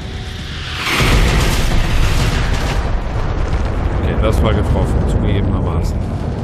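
A second explosion booms close by and rumbles on.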